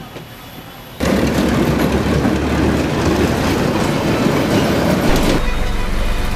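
A train rumbles past on the rails.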